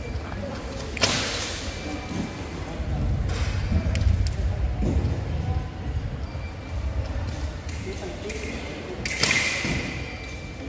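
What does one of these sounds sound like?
Fencing blades clash briefly.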